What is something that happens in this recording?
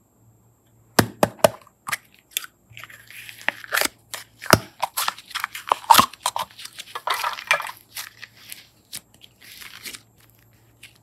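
Soft clay squishes and crackles between fingers.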